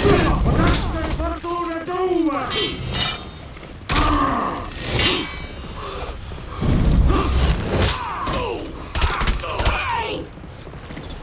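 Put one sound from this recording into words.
Steel weapons clash and strike in a fierce fight.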